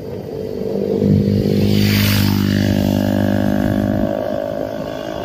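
A motorbike engine hums as it approaches and passes close by.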